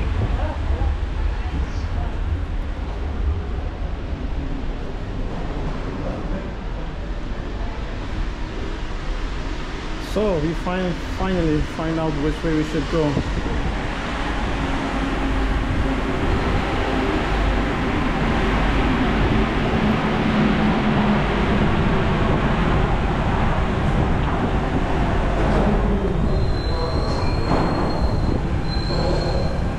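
Footsteps echo in a large tiled underground passage.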